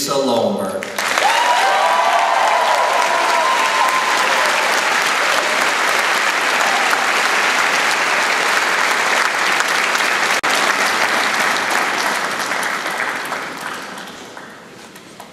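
A large audience applauds loudly.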